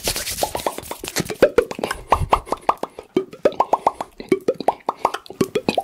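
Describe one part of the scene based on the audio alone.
Fingers snap and tap right up close to a microphone in quick, crisp bursts.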